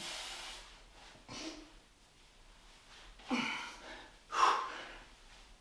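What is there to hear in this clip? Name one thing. A man breathes out hard with each movement.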